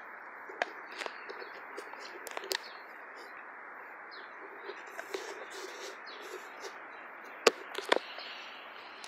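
A dog gnaws and crunches on a wooden stick close by.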